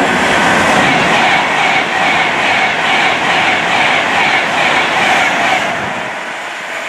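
A high-speed train rushes past close by with a loud roar and rhythmic wheel clatter.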